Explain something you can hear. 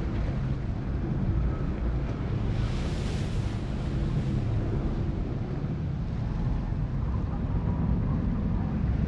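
Water splashes and roars against a ship's bow.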